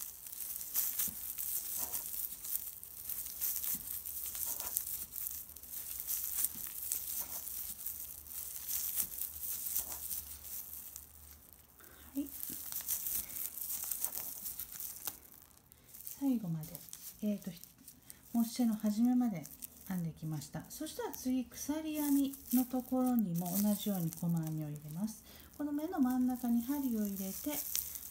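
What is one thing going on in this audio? Stiff plastic yarn crinkles and rustles as a crochet hook works it, close up.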